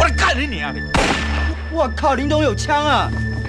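A young man shouts in alarm.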